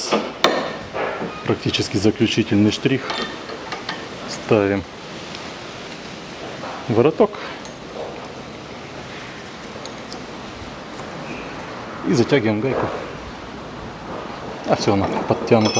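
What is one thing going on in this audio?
A ratchet wrench clicks as a nut is turned.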